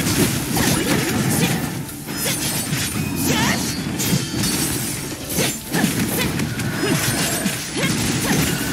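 Explosive impacts boom over the fighting.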